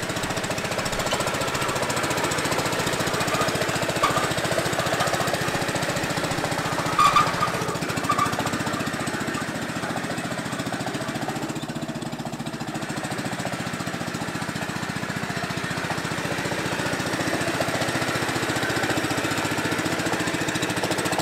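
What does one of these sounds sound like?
A small engine runs with a steady rapid chugging.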